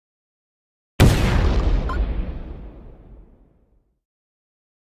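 A deep booming burst rings out and slowly fades.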